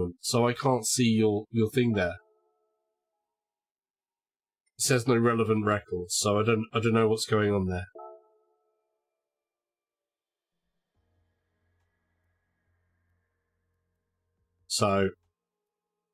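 A young man talks with animation, close to a microphone, in short bursts.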